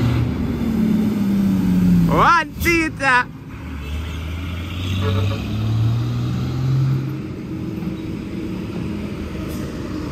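A truck engine rumbles as the truck passes close by and pulls away.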